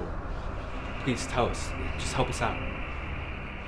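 A young man speaks.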